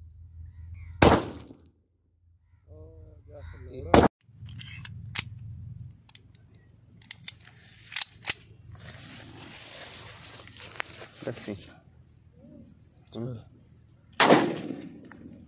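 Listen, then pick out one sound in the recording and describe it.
A pistol fires loud single shots outdoors.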